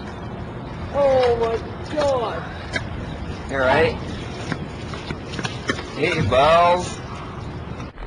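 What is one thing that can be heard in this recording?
A young man groans in pain close by.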